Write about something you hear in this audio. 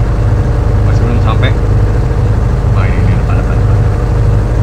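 A man speaks briefly through a headset microphone.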